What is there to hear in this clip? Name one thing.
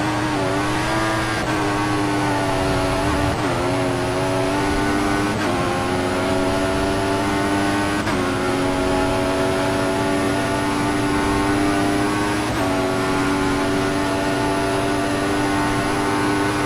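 A racing car engine screams at high revs, dropping briefly at each gear shift and climbing again.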